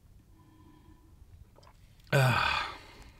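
A man gulps a drink from a bottle.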